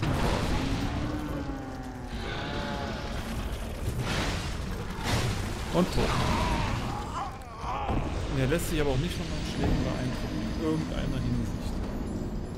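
A giant creature growls and roars.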